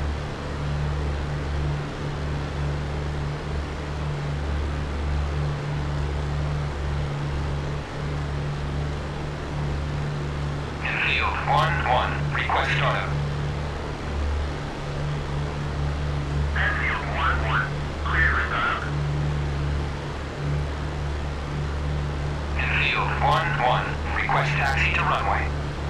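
An aircraft engine drones with a low, steady hum.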